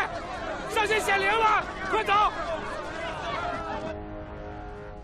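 A crowd of men shouts urgently.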